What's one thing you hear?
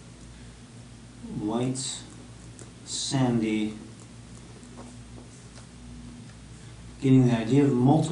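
A pen scratches across paper.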